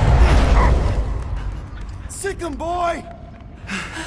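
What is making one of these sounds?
A man shouts with excitement.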